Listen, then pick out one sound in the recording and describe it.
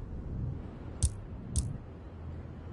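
Two short menu clicks sound from a video game.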